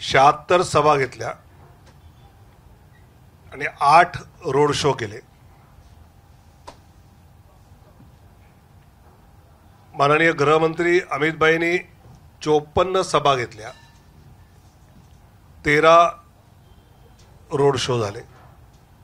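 A middle-aged man speaks calmly into a microphone, pausing often between phrases.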